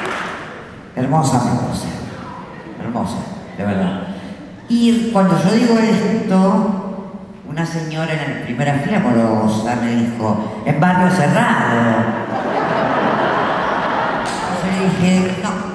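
A woman sings into a microphone in a large hall.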